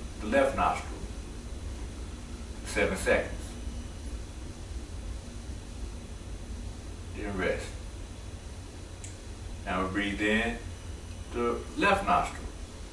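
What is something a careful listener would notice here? A man chants slow, drawn-out syllables in short bursts, close by.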